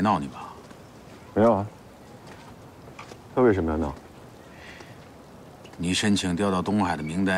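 A man speaks calmly and quietly nearby.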